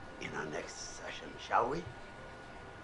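A middle-aged man speaks calmly and warmly.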